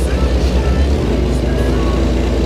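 A truck engine drops to a lower, steadier drone as it changes gear.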